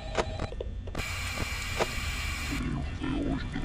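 Electronic static hisses loudly for a moment.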